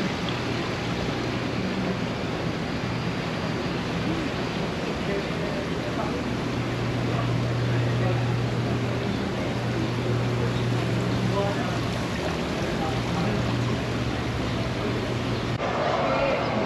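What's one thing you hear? Water bubbles steadily in aerated tanks.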